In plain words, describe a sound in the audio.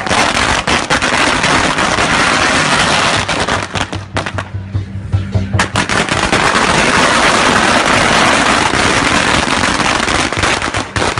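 Firecrackers crackle and bang rapidly and loudly outdoors.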